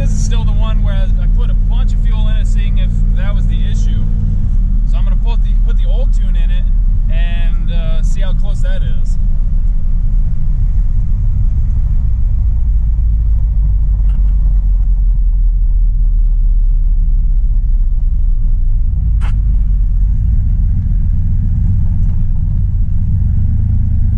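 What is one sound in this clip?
A car engine drones steadily from inside the car.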